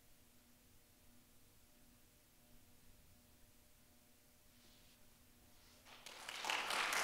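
A violin holds a soft, long final note.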